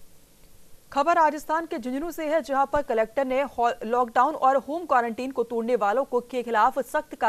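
A woman reads out the news calmly and clearly through a microphone.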